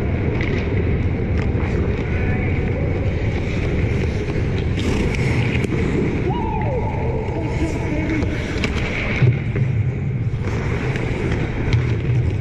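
Skate blades scrape and carve across the ice.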